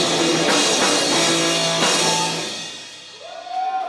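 A rock band plays loudly through amplifiers, then stops.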